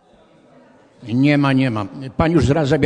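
A man speaks loudly through a microphone in a large room.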